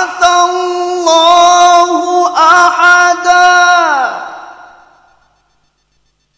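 A man chants in a long, sustained melodic voice through a microphone, and the final note fades out in a hall's echo.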